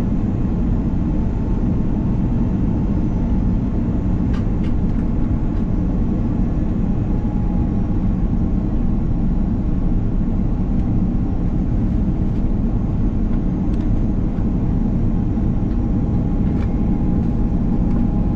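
A jet engine roars steadily with a deep rumble close by.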